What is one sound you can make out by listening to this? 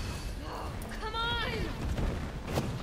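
A young woman exclaims in frustration.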